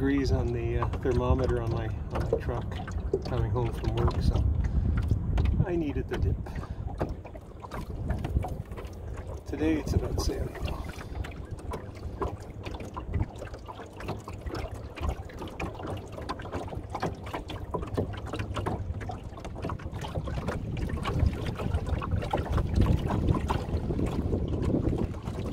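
Small choppy waves slap and splash against the wooden hull of a sailing dinghy.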